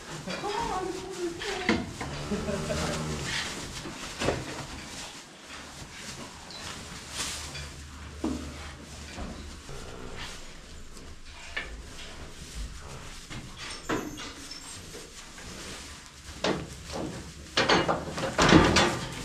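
Calves shuffle and rustle in straw nearby.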